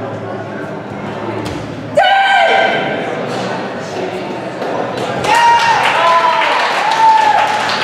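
A body thuds onto a mat.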